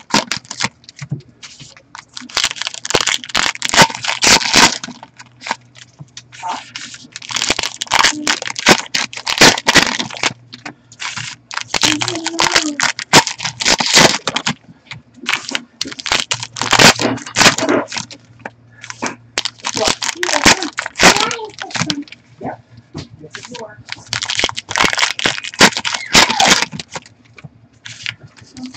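Foil card packs crinkle and tear open in gloved hands.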